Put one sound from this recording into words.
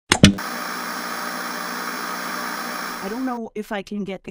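Static hisses loudly.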